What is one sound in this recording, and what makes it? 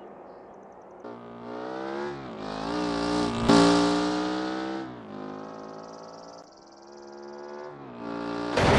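A car engine revs hard as a car speeds off.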